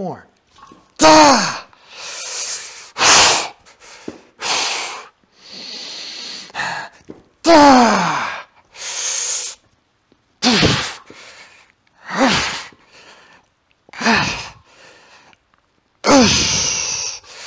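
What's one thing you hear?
A man grunts and groans loudly with effort.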